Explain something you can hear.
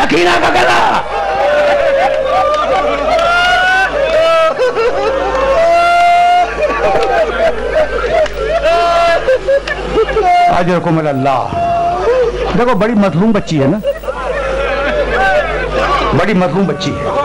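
An elderly man recites with feeling in a singing voice through a loudspeaker.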